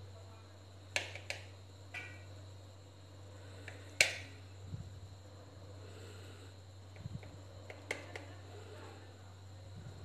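A knife taps against a plate.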